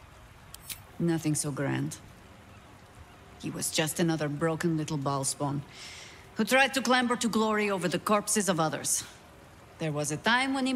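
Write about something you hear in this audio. A young woman speaks calmly and coolly, close by.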